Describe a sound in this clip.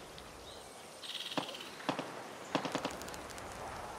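Sharp gunshots crack out one after another.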